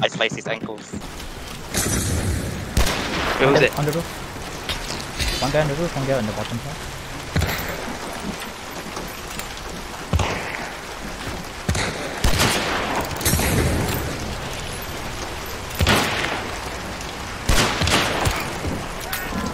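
Rain pours down steadily.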